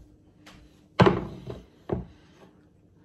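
A metal baking pan clatters down onto a counter.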